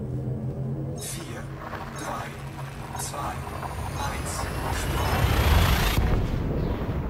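A spaceship's drive charges with a rushing roar that builds and cuts off suddenly.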